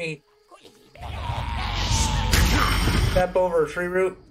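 Fire roars in a burst of flame.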